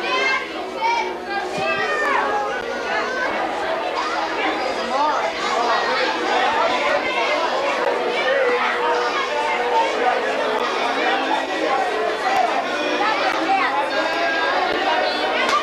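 A crowd of young men and women chatters and talks all around, close by.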